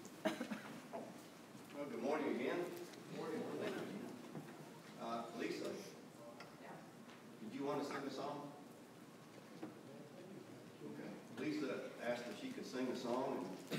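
A man speaks calmly into a microphone in a large echoing room.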